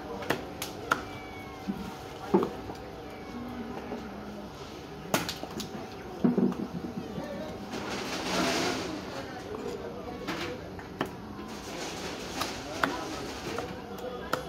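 A knife scrapes and knocks against a fish on a wooden chopping block.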